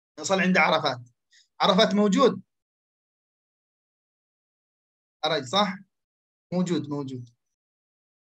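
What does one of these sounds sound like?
A young man speaks calmly and close into a microphone, in short phrases with pauses.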